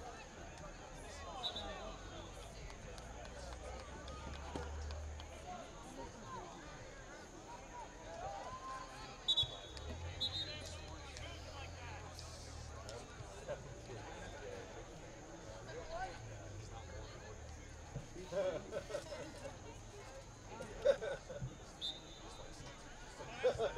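Young players shout and call to each other in the distance across an open outdoor field.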